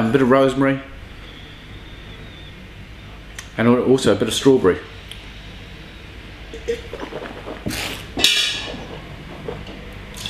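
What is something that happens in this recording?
A man sniffs and slurps from a glass.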